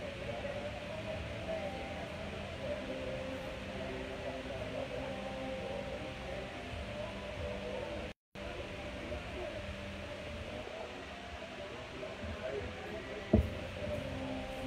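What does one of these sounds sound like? An amplifier hums steadily.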